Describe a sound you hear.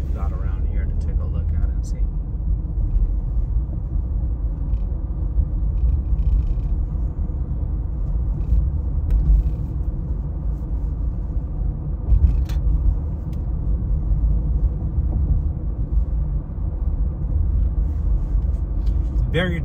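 A car engine hums and tyres roll steadily on the road, heard from inside the car.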